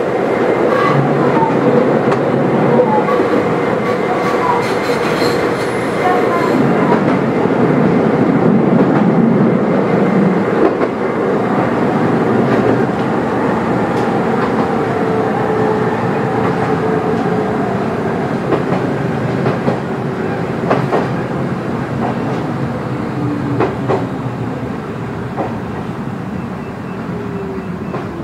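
A train's motor whines, rising and falling in pitch.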